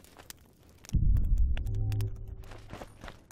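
Flames roar up in a burst of fire.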